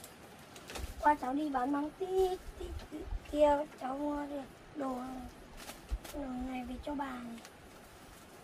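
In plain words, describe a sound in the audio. A boy talks calmly close by.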